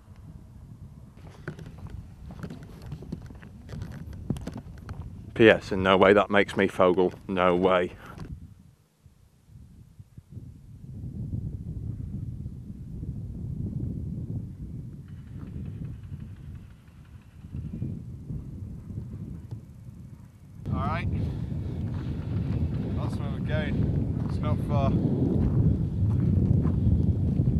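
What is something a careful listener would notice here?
Wind blows and rumbles across open ground.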